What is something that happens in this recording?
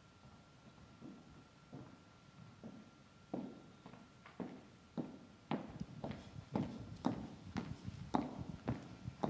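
Footsteps knock on a wooden stage.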